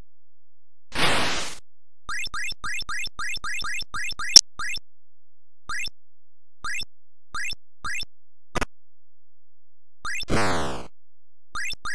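A harsh, buzzing electronic crash sounds and fades.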